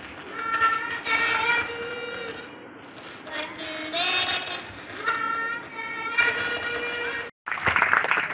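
Children sing together.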